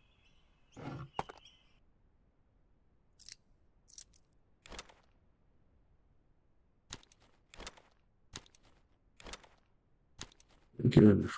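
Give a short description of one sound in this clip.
Menu clicks sound in a game.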